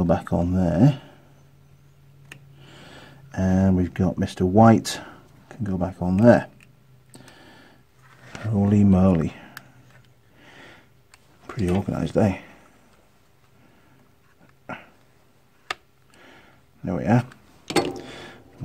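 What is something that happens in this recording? Hard plastic parts click and rattle as hands handle a power tool casing.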